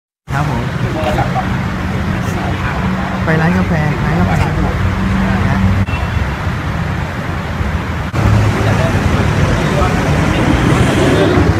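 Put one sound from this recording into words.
Traffic rumbles steadily on a nearby road.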